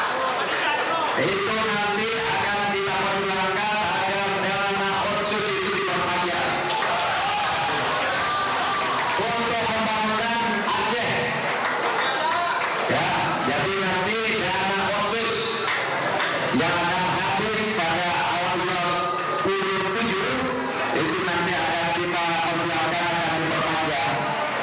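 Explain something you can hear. An elderly man speaks calmly into a microphone, heard through a loudspeaker in a crowded hall.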